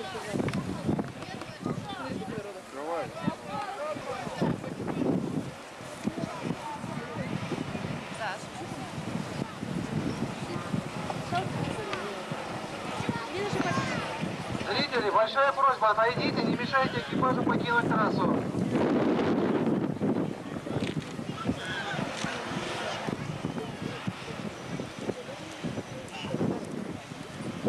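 A crowd of men shout and talk excitedly outdoors.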